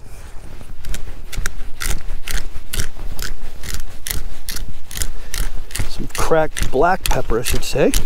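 A pepper grinder clicks in quick, even turns.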